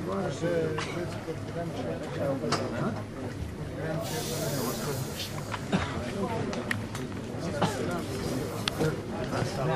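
Many men chatter in a lively room.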